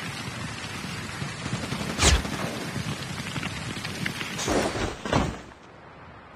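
A snowboard slides over snow.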